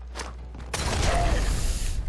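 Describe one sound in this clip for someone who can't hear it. A laser rifle fires in bursts.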